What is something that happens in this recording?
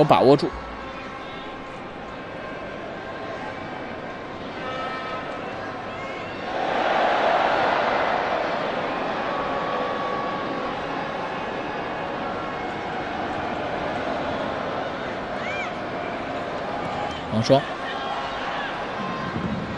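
A stadium crowd murmurs and swells into a roar.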